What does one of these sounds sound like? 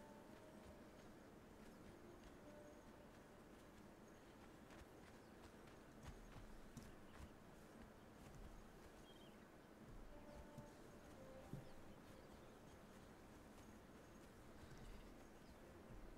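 Footsteps patter quickly over stone, sand and grass.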